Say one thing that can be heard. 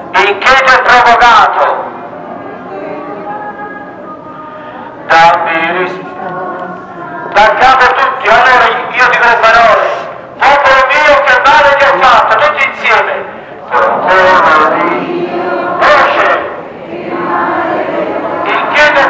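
A crowd of men and women sings a slow hymn together outdoors.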